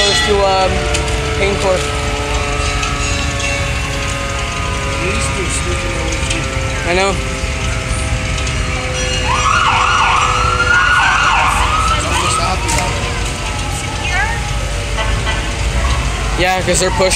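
Old fire engines rumble slowly past along a street.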